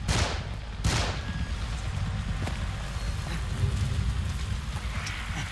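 Footsteps crunch on rubble.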